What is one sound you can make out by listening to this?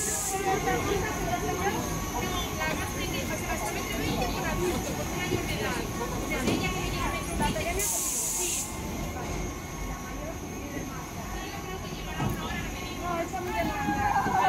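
Children and adults chatter and call out nearby.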